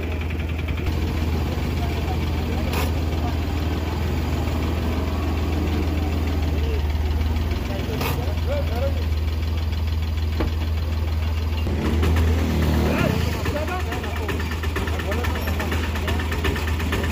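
A low engine rumbles steadily.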